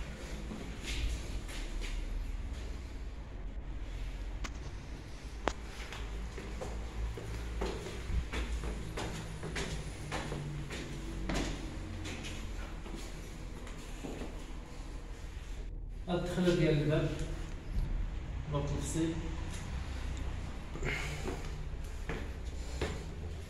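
Footsteps climb stone stairs in a narrow echoing stairwell.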